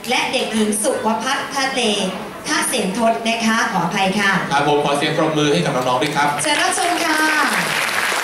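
A man speaks with animation through a microphone over loudspeakers.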